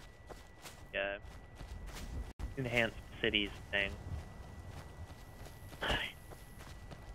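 A young man speaks in short bursts close to a headset microphone.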